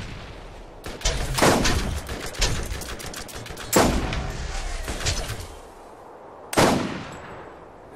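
A sniper rifle fires loud booming shots.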